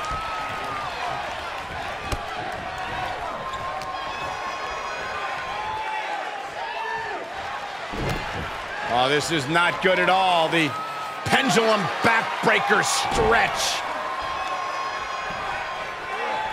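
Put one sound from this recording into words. A large crowd cheers and murmurs steadily in a big arena.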